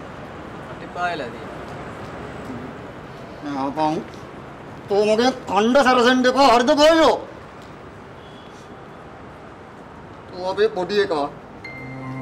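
Another young man answers quietly up close.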